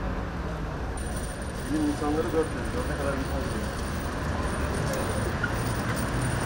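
A hand cart rolls over paving stones.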